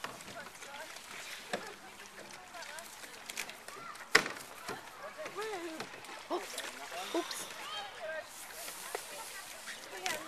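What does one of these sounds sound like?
A kayak hull slides over grass into the water.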